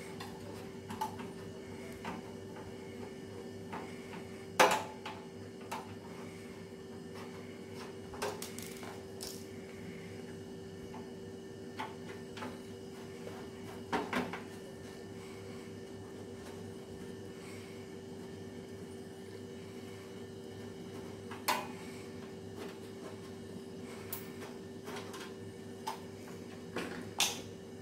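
Metal parts clink and tap as a heater's fins are handled.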